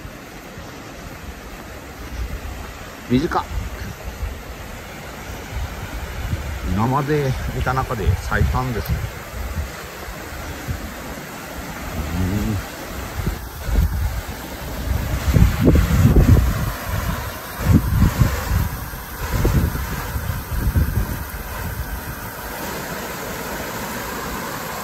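A shallow stream rushes and splashes over rocks.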